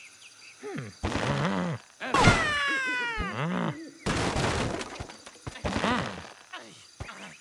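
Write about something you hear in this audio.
A cartoon bird squawks as it is flung through the air.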